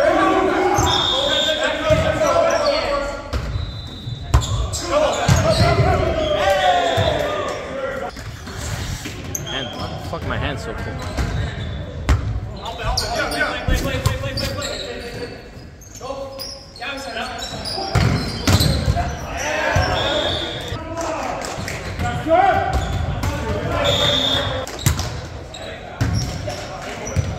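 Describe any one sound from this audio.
A volleyball is smacked by hands again and again.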